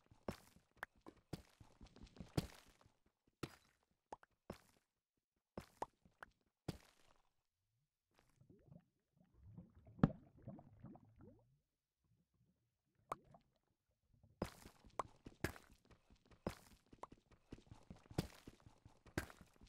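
A pickaxe chips and breaks stone blocks in quick, sharp knocks.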